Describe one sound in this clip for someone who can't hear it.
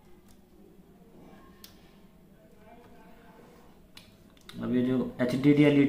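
A small plug clicks into a socket.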